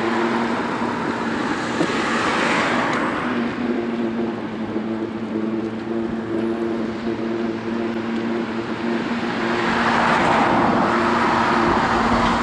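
Cars pass by on a nearby road, swelling and fading.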